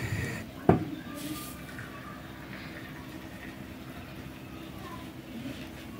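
Hot coffee pours from a metal pot into a cup.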